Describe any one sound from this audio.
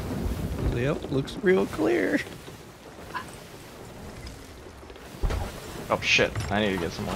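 Ocean waves churn and splash against a wooden ship.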